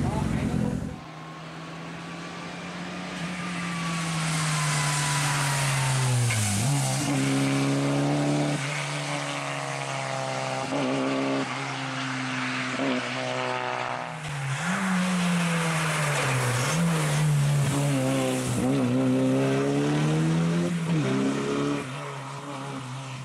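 A rally car engine revs hard, rising and dropping as it shifts gears while racing past.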